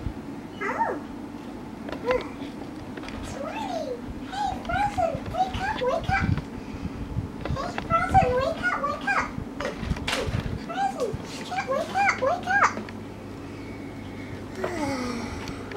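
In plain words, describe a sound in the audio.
Plastic toys knock and rustle as they are handled.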